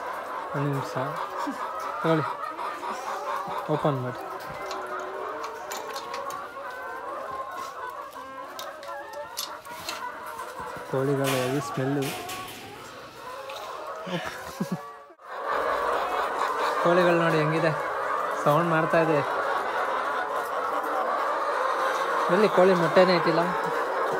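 A large flock of caged laying hens clucks and squawks.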